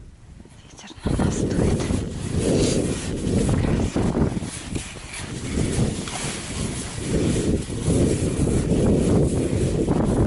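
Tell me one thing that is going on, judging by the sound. Skis swish and crunch over packed snow close by.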